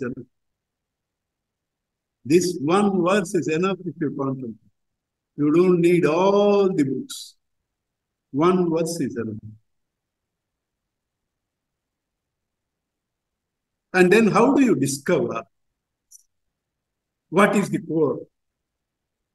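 An elderly man chants slowly and calmly close to a microphone, with long pauses.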